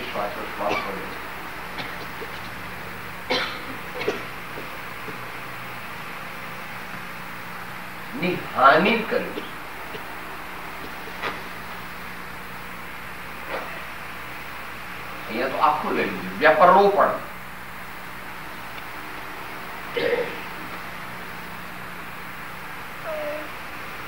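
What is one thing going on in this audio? An elderly man speaks slowly into a microphone, with long pauses.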